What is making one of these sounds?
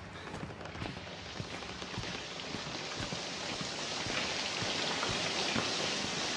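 Footsteps creak on wooden stairs.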